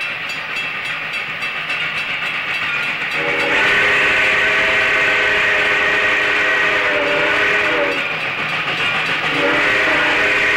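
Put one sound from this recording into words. A train rolls steadily along the tracks.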